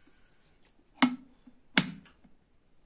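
A kettle lid snaps shut with a sharp click.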